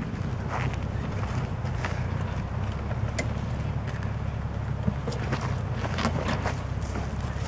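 Tyres crunch and grind over loose rocks.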